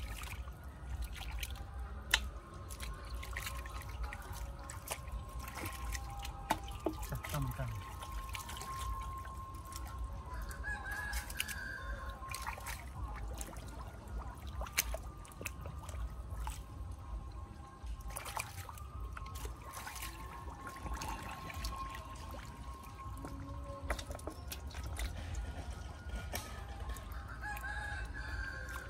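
Hands squelch and splash in shallow mud and water.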